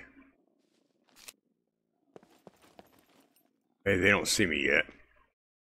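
Footsteps tread lightly on a hard floor.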